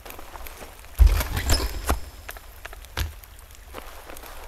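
A heavy wooden chest lid creaks open.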